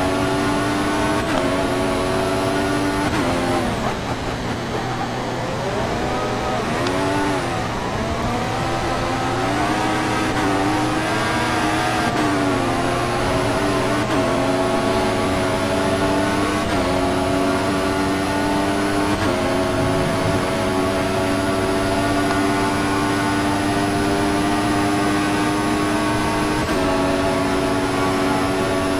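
A racing car engine screams at high revs, dropping in pitch for braking and rising through the gears.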